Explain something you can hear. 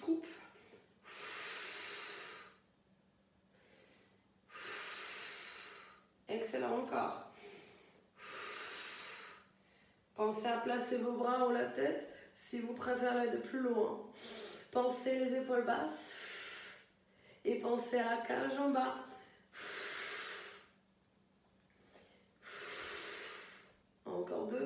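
A woman breathes out loudly and heavily.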